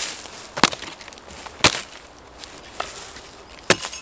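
Wood splits and cracks apart.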